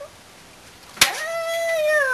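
A dog lands in a metal wheelbarrow with a clang.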